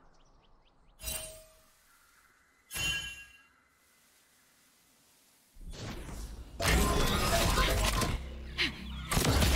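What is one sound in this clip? A magic spell bursts with a sharp whoosh.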